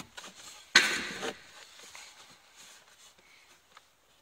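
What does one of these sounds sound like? A plastic filter scrapes and rustles as it slides into a housing.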